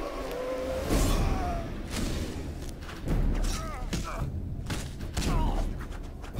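Blades swish and clash in a fight.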